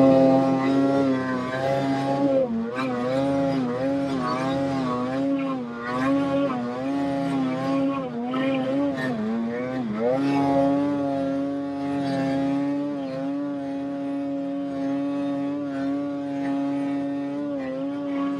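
Snow sprays and hisses under the snowmobile's track.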